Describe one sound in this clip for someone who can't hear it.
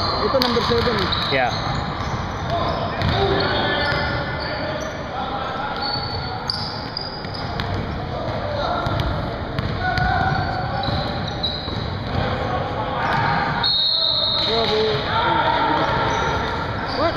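Sneakers squeak on a wooden court in a large echoing gym.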